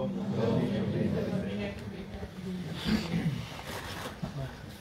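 A mixed choir sings slowly in a large echoing hall, then falls quiet.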